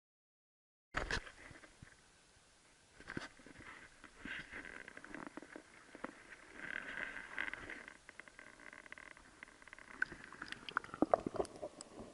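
Water laps and trickles close by.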